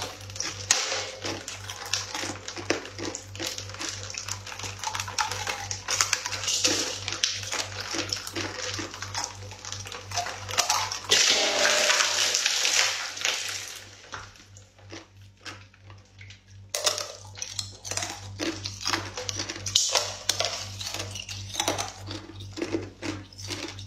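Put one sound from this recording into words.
Jelly crunches and crackles as it is bitten and squeezed.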